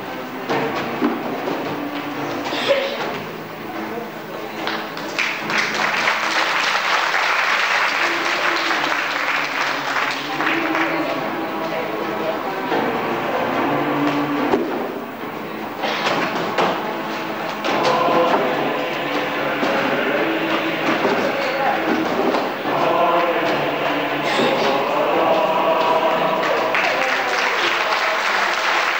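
A crowd of children chatters and calls out in an echoing hall.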